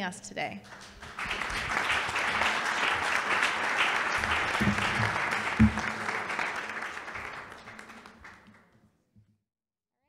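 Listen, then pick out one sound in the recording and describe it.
An audience claps in applause that slowly fades.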